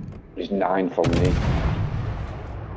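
Ship guns fire with a heavy boom.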